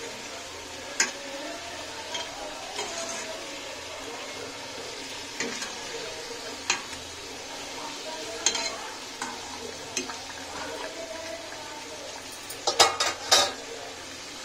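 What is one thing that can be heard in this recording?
A metal skimmer clinks against a pan.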